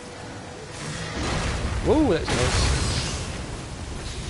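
A blade strikes with a loud, whooshing burst.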